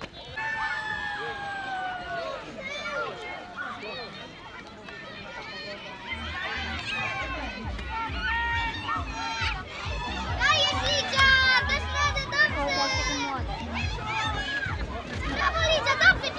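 A crowd of children and adults cheers and shouts outdoors.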